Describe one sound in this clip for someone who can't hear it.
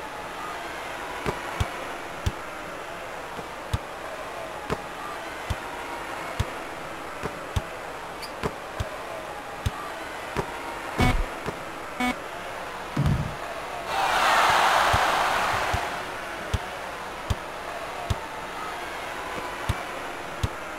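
A basketball bounces on a wooden court in steady thumps.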